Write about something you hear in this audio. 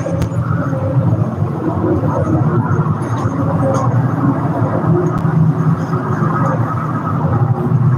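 A middle-aged man talks casually close by.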